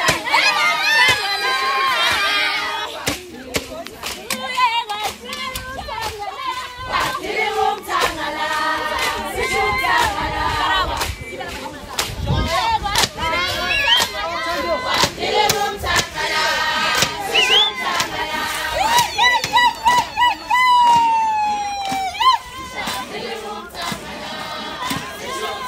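A crowd of young women sings and chants loudly close by.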